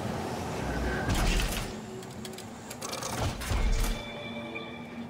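A heavy metal lid thuds and clanks open.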